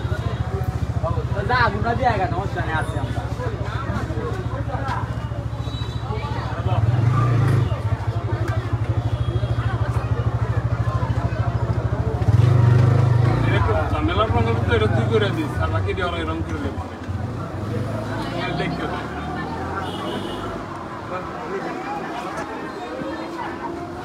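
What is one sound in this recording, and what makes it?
Chalk scratches against a rough wall.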